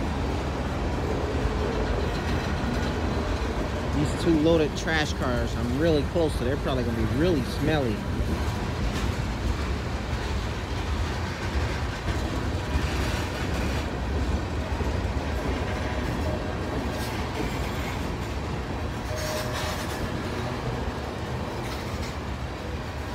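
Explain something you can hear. Freight train cars rumble and clatter past close by on the rails.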